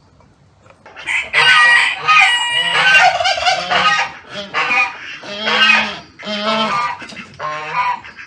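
Geese honk loudly and repeatedly.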